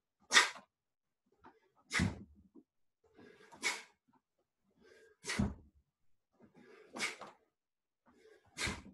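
A man lets out a short, sharp shout or breath with each strike, at an even pace.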